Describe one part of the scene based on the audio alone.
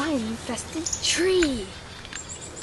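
A teenage boy speaks with animation close by.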